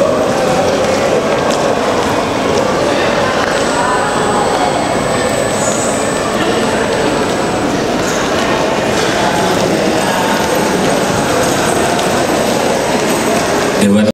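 A choir of young women sings together through loudspeakers in a large hall.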